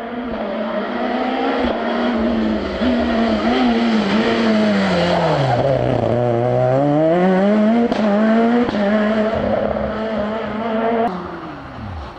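A rally car engine revs hard, dropping and climbing in pitch as it shifts gears.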